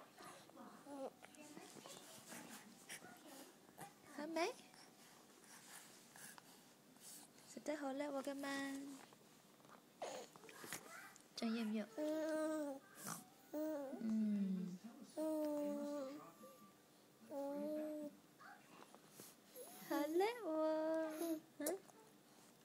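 A baby coos and babbles close by.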